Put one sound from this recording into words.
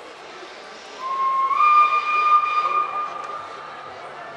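A steam locomotive's whistle blows loudly.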